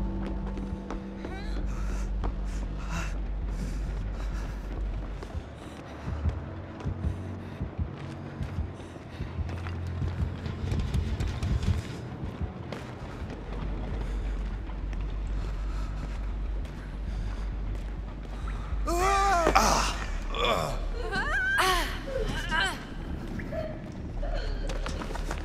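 Footsteps scuff steadily on a hard floor.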